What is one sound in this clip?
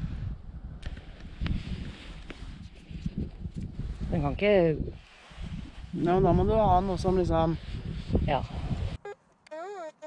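A man talks calmly up close.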